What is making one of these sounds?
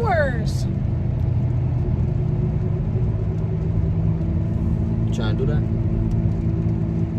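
A car engine and tyres rumble steadily.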